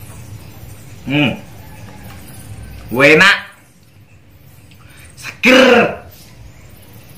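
A man lets out loud breaths after drinking.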